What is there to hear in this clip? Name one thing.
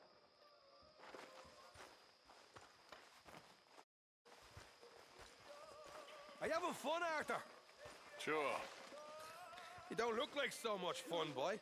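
Footsteps crunch on dirt ground.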